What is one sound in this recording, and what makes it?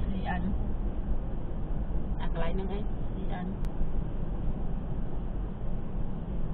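A car engine hums and tyres rumble on the road while driving.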